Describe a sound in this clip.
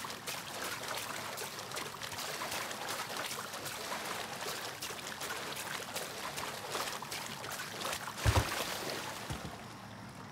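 Water splashes and sloshes steadily.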